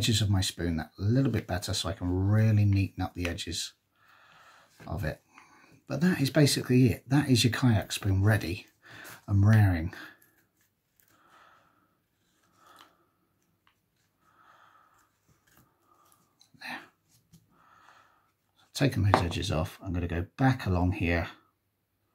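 A knife shaves thin curls from a piece of wood.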